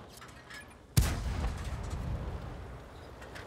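A tank cannon fires with a loud boom that rumbles away.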